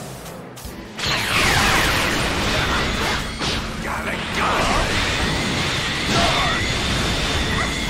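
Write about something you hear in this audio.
Energy blasts explode loudly in a fight.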